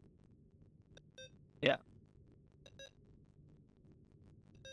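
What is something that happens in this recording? Game buttons give short electronic beeps.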